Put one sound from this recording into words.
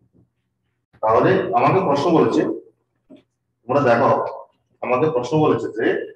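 A man speaks clearly into a close microphone, explaining.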